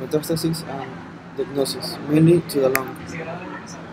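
A young man speaks calmly into a nearby microphone.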